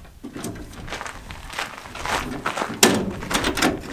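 A metal ladder clanks as it unfolds.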